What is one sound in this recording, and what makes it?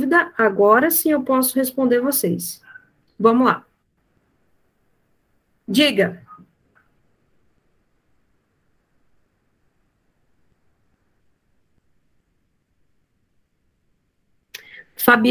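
A woman speaks in short phrases through an online call.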